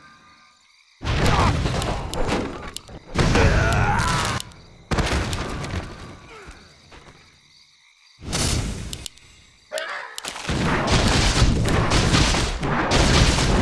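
Fantasy battle effects whoosh and crackle in bursts.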